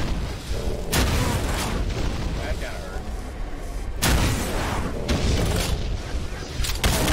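Video game gunshots boom in loud bursts.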